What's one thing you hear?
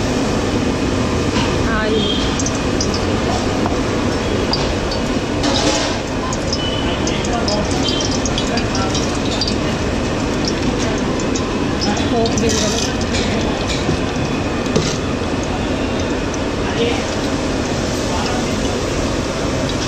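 Hot oil sizzles and crackles in a pot.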